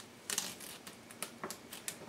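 Backing paper peels off sticky tape with a soft crackle.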